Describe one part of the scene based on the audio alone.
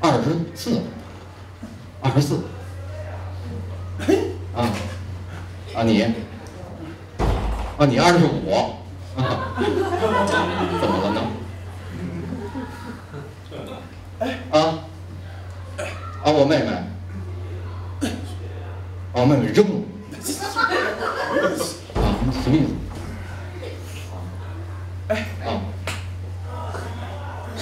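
A second middle-aged man answers briefly through a microphone.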